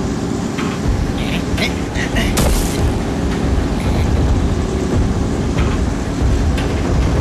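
A road roller's engine rumbles steadily.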